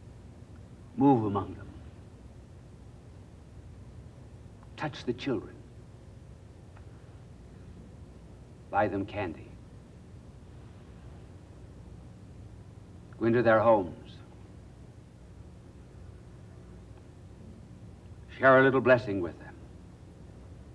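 An elderly man speaks slowly and deliberately into a microphone, pausing long between short phrases.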